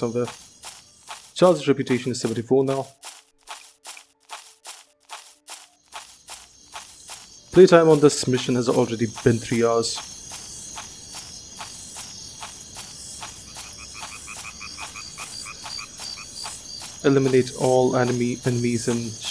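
Armored footsteps thud quickly and evenly on soft ground.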